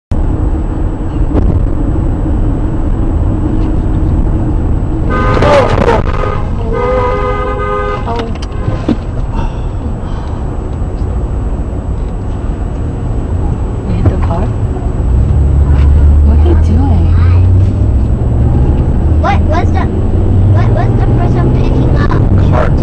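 A car engine hums steadily as tyres roll over the road.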